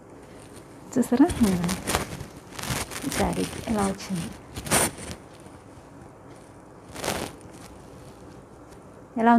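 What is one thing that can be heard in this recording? A woman speaks calmly close to the microphone.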